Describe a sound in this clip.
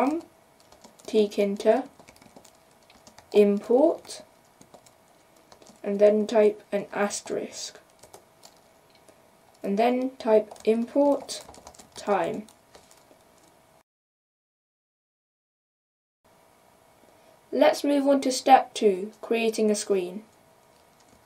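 A boy speaks calmly into a close microphone, in short phrases with pauses.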